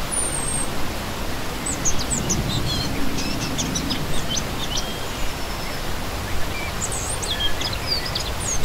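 A shallow stream rushes and splashes steadily over rocks.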